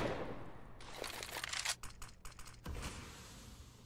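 A rifle fires a few quick shots.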